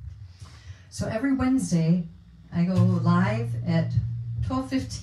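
A woman strums an acoustic guitar.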